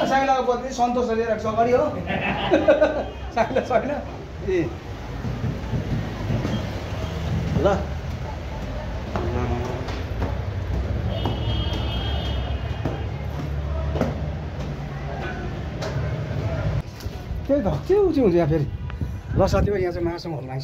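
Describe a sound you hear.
A middle-aged man talks close by, with animation.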